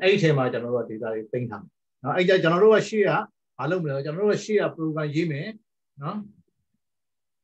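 A man speaks steadily over an online call.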